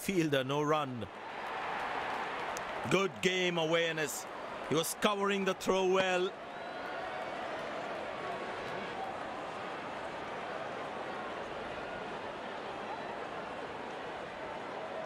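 A stadium crowd cheers in the distance.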